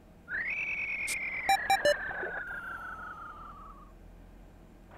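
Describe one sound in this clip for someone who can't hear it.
An electronic game tone slides down in pitch.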